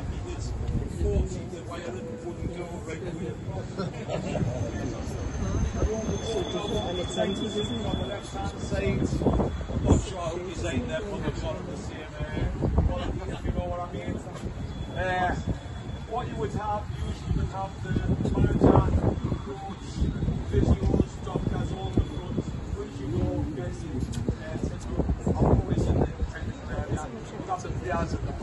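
Wind buffets the microphone.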